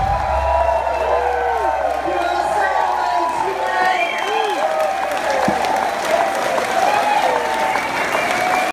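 A live rock band plays loudly in a large echoing room.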